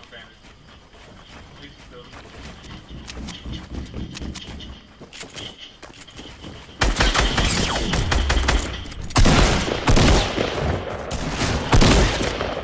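Wooden walls clatter into place as they are built quickly.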